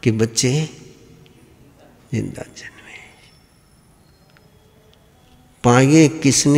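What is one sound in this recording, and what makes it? A man speaks slowly and calmly into a microphone, with pauses.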